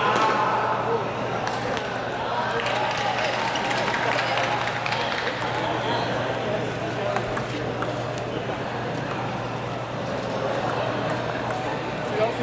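Table tennis balls click sharply off paddles and a table, over and over, in a large echoing hall.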